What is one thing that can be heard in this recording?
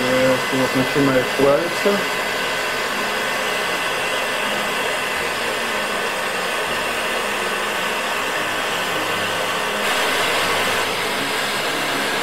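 A heat gun blows with a steady whooshing roar.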